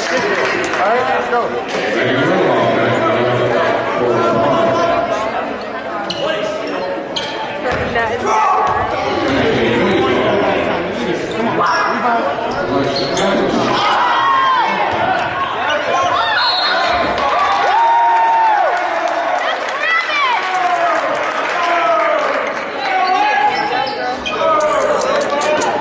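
A crowd chatters and cheers in a large echoing gym.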